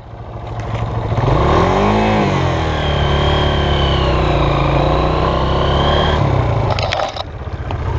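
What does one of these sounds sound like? A motorbike's tyres churn through mud and snap dry branches.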